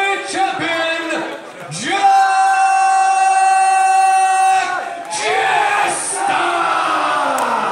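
A man announces loudly through a microphone and loudspeakers, drawing out his words, in a large echoing hall.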